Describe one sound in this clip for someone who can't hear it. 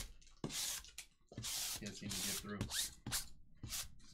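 A lint roller rolls with a sticky crackle.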